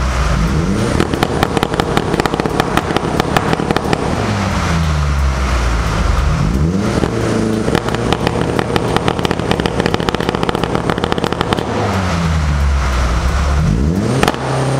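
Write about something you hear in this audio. A car exhaust crackles and pops between revs.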